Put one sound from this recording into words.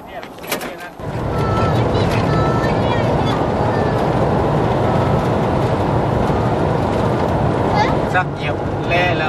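A vehicle engine hums steadily while driving on a road.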